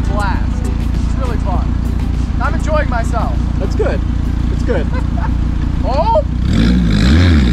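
A sports car engine idles with a deep, throbbing rumble nearby.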